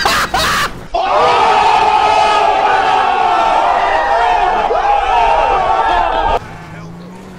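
A group of young people cheer and yell.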